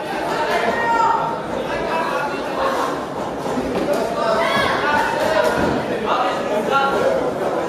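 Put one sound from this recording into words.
Boxing gloves thud against a boxer.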